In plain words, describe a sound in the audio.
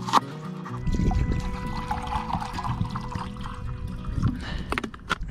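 Water pours from a bottle into a metal pot.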